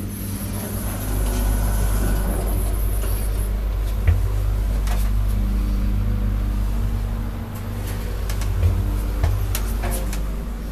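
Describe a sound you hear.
An elevator hums with a low, steady rumble as it moves.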